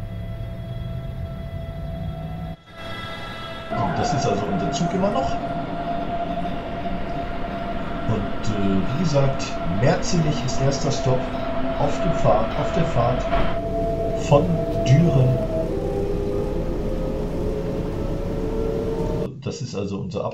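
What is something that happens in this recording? An electric train's motor whines steadily, rising in pitch as the train speeds up.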